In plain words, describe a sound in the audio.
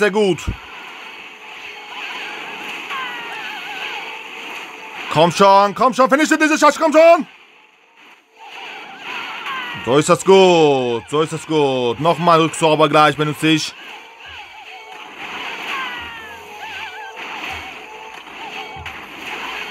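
Game music and battle effects play throughout.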